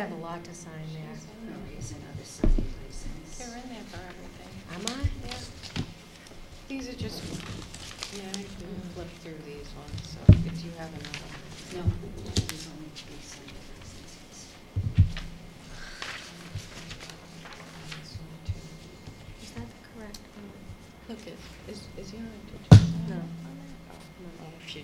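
A woman speaks calmly into a microphone in a large room.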